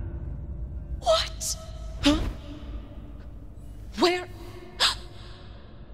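A young woman gasps and calls out in surprise.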